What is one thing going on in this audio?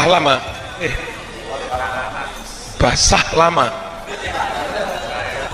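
An elderly man speaks with animation into a microphone.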